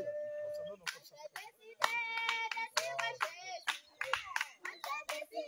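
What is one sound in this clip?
A man sings loudly close by, holding long drawn-out notes.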